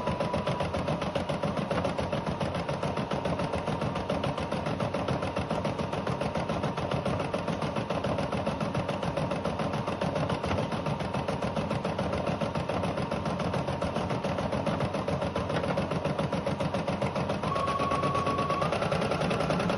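An embroidery machine stitches with a fast, steady, rattling hum.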